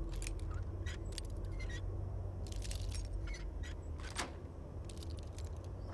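Metal lock picking clicks and scrapes softly.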